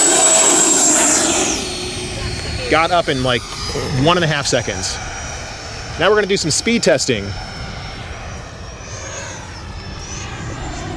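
A model plane's electric motor whines loudly as it takes off, then the whine drops in pitch and fades as it climbs away.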